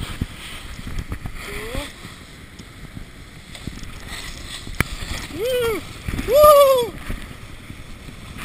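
A snowboard scrapes over hard snow.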